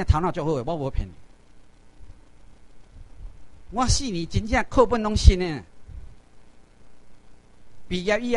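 A middle-aged man lectures through a microphone in a room, speaking in short bursts with pauses.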